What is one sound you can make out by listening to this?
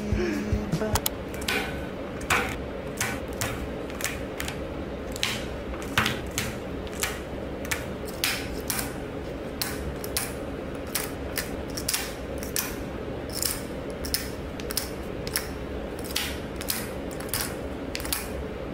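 Metal capsules click into a wire rack, one after another.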